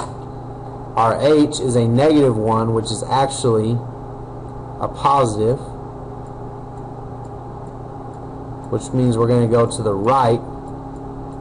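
A man talks calmly and close to a microphone, pausing between phrases.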